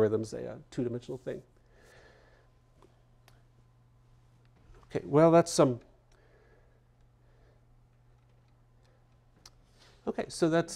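A man lectures through a microphone, speaking in short bursts with pauses.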